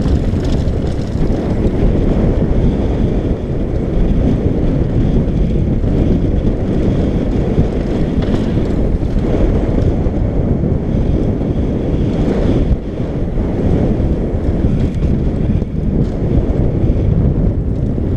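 Bicycle tyres rumble and crunch over loose gravel.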